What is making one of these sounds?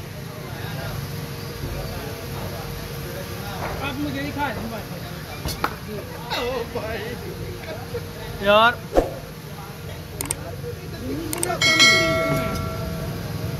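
A man sips a drink loudly through a straw.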